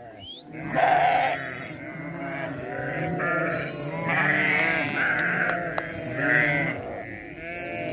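Many goats bleat loudly close by.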